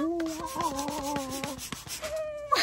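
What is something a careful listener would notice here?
A young woman sings cheerfully close by.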